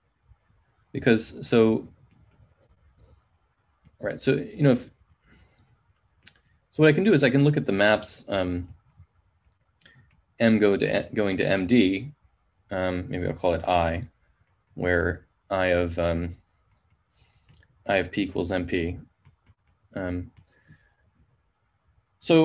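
A man speaks calmly in short phrases through an online call.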